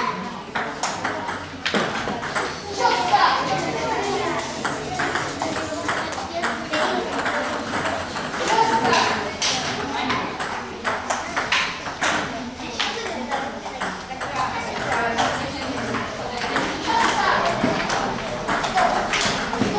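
Children chatter and call out in the background.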